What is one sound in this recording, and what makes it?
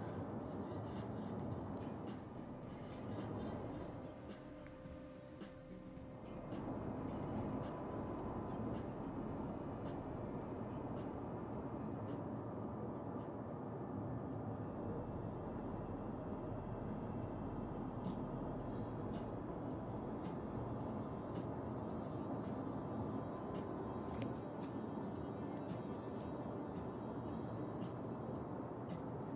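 A ship's engines rumble low and steady.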